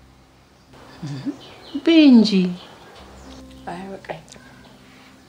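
An older woman speaks with feeling, close by.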